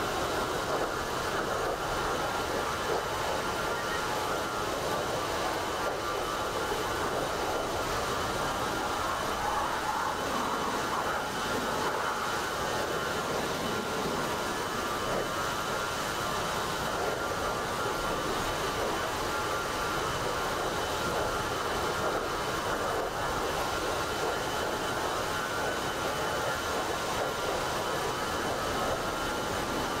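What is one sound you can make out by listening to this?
Jet engines roar steadily as a plane flies.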